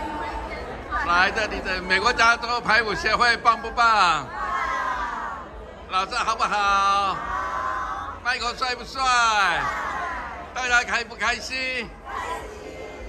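A group of women shout and cheer together close by.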